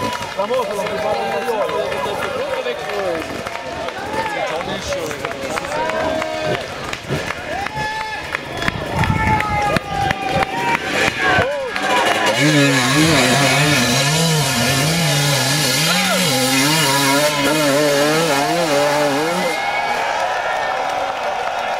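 A dirt bike engine revs hard, its pitch rising and falling.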